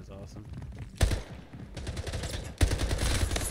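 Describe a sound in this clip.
A rifle fires sharp, rapid shots.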